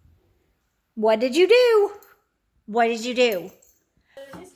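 A dog howls and whines.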